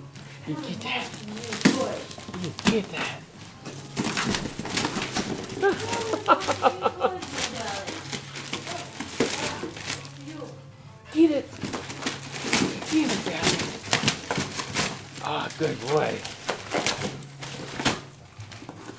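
A dog rips and crumples wrapping paper close by.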